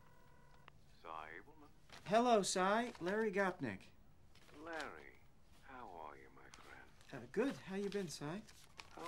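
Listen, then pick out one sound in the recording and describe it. A man speaks calmly into a telephone, close by.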